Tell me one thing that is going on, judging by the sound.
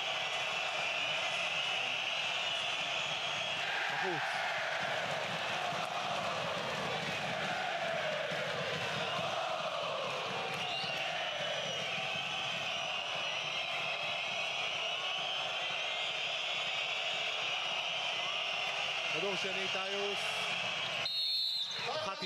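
A large crowd cheers and chants loudly in a big echoing arena.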